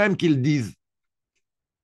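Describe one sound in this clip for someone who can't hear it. A woman speaks briefly through a computer microphone.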